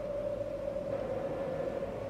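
Two young women sing into microphones.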